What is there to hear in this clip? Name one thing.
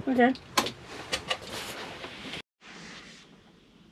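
A vehicle door slams shut.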